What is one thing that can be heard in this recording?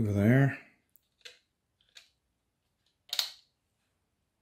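A plastic toy gun clicks as its trigger is pulled.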